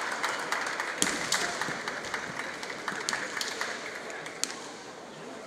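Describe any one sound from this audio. Bamboo swords clack together sharply.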